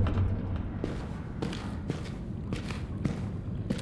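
Footsteps thud slowly on a stone floor.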